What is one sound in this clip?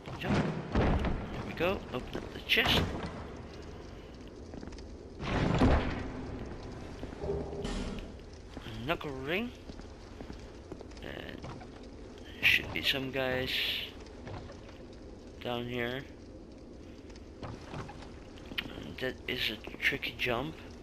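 Armoured footsteps clank on stone and wooden boards.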